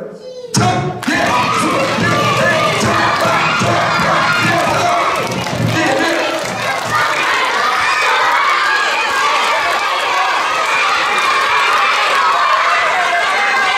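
A crowd of children cheers and shouts loudly.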